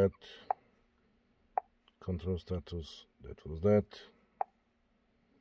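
A finger taps on a touchscreen with soft clicks.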